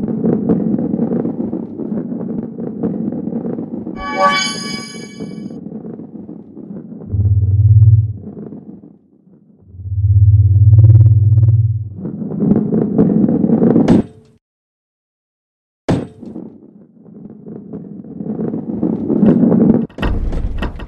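A ball rolls with a low rumble along a wooden track.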